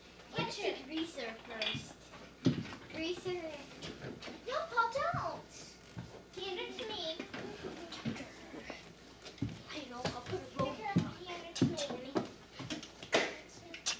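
Young children chatter and squeal excitedly close by.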